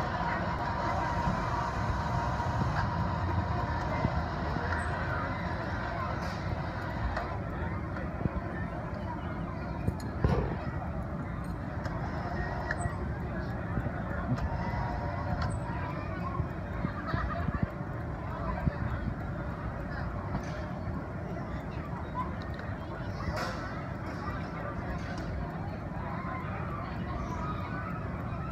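Children chatter and call out nearby outdoors.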